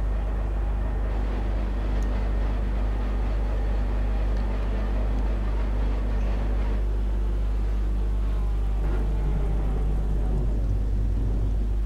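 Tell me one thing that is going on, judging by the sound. A race car engine rumbles steadily at low speed.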